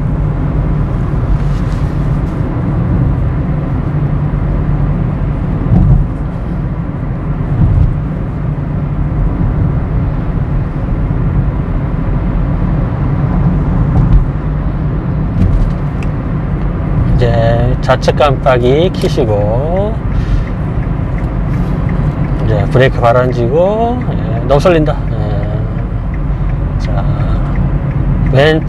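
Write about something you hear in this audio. A car engine hums steadily with road noise from inside the car.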